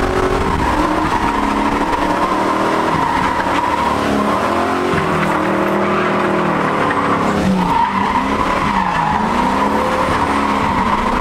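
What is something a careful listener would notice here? Tyres squeal on tarmac.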